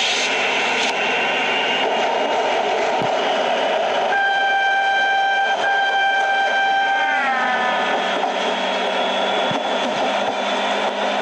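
A train rolls along the tracks with a steady rumble.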